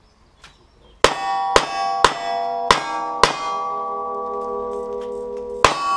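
Steel targets ring after being hit.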